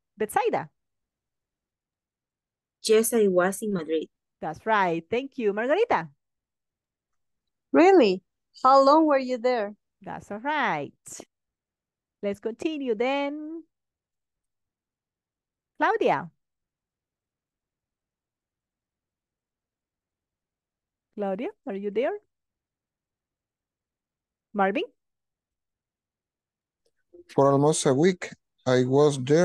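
A woman speaks calmly in short bursts over an online call, with pauses between.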